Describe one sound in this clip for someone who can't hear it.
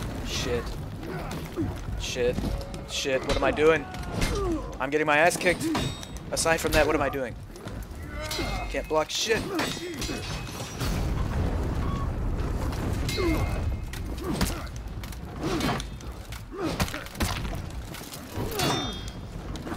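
Swords clash and clang.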